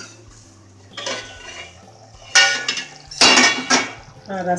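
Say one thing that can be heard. A metal lid clatters and rings as it is lifted off a steel pot.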